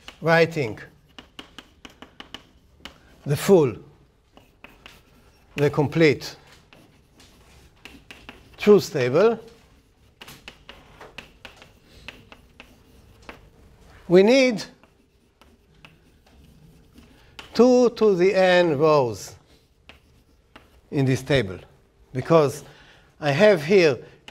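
An older man speaks calmly in short bursts.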